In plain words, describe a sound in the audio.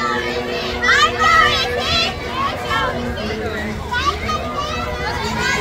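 A crowd of young people chants and calls out loudly outdoors.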